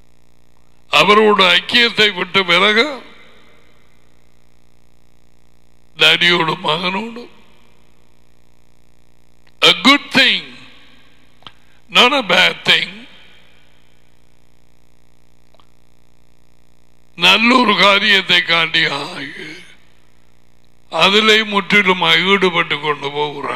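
A middle-aged man speaks with animation into a headset microphone, in bursts with pauses.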